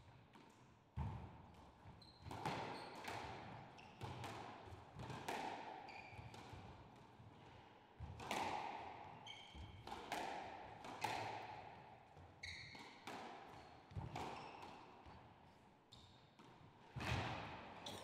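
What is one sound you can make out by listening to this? A squash ball is struck hard and smacks against the walls, echoing around the court.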